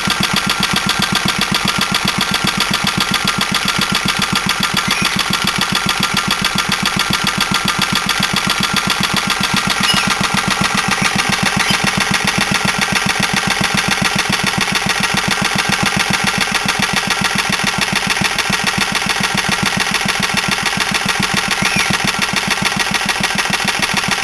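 A small single-cylinder engine runs at a steady, rapid idle, chugging and rattling close by.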